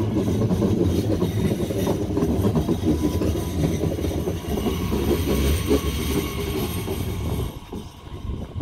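A train rushes past close by with a loud rumble and rattle.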